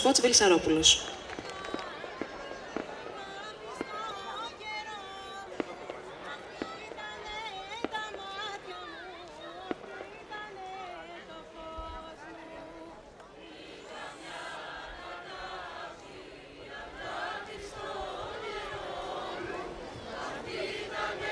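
A small band plays folk music on stringed instruments.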